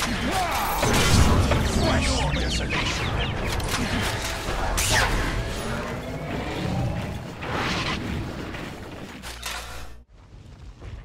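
Magic blasts crackle and boom in a busy fight.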